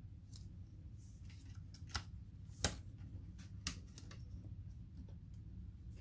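Hands handle a metal cooling part with light taps.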